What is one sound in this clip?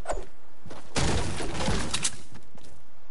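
A pickaxe strikes wood with repeated thuds.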